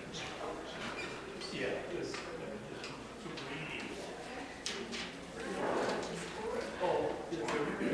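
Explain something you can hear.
Brass instruments play together in a large echoing hall.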